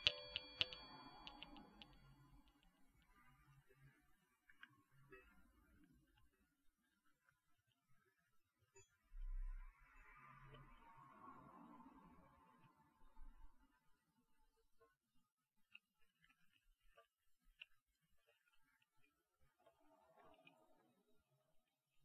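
Metal balls roll and rub softly in hands close to a microphone.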